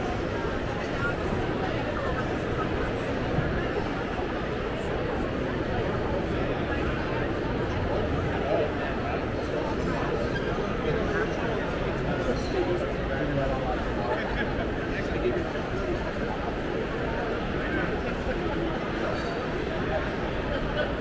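A crowd chatters steadily in a large echoing hall.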